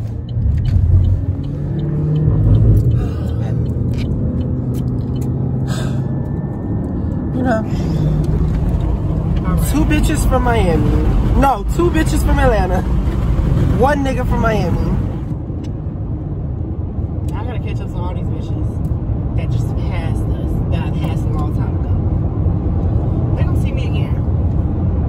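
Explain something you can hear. Tyres rumble steadily on a road from inside a moving car.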